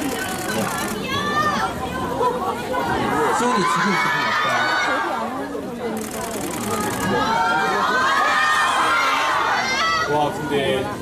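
A crowd of young women cheers and screams.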